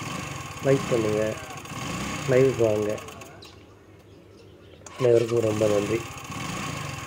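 A scooter's starter motor whirs in short bursts.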